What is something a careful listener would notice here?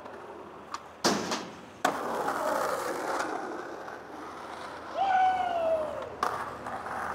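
A skateboard lands with a sharp clack.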